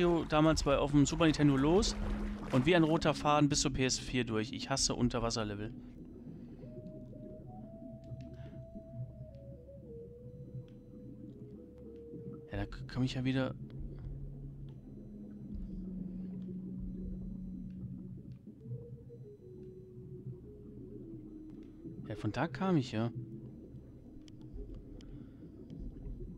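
A swimmer strokes through water with a low, muffled underwater rumble.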